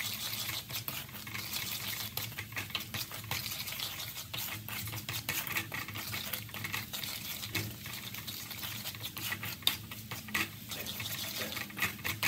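Minced garlic sizzles in hot oil in a pan.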